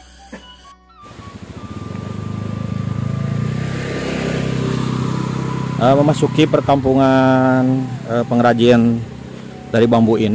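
A motorbike engine drones as it rides past and away.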